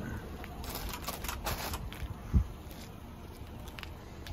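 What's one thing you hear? Plastic bags rustle and crinkle as someone rummages through rubbish.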